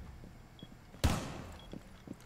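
A wall bursts apart with a sharp bang.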